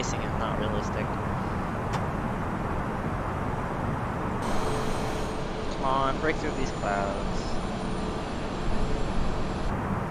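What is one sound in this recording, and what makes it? A jet engine roars steadily in flight.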